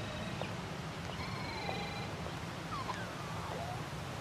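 Footsteps tap lightly on stone paving.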